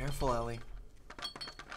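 A young man speaks briefly close to a microphone.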